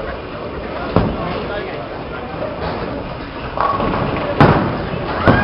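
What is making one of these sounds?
A bowling ball thuds onto a lane and rumbles as it rolls.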